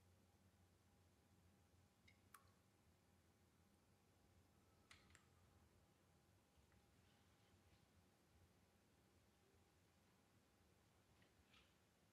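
A guitar is softly plucked.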